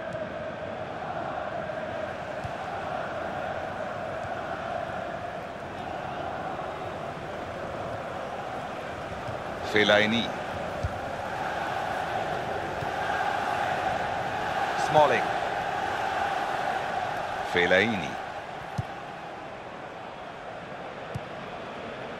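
A large crowd roars and chants steadily in a stadium.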